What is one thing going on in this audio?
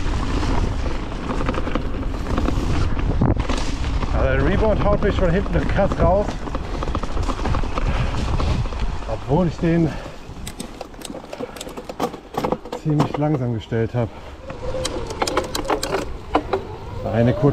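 Bicycle tyres roll and crunch over dry leaves on a dirt trail.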